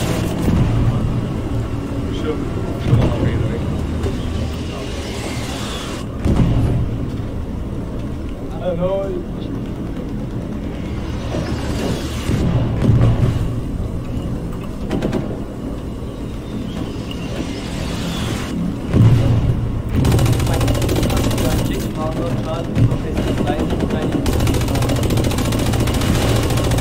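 A tank engine rumbles steadily up close.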